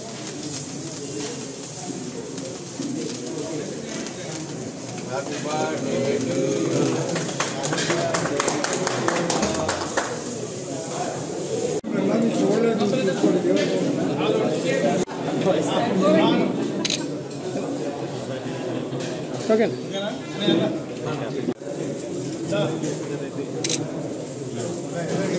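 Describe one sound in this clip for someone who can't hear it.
A crowd of men and women chatter and cheer nearby.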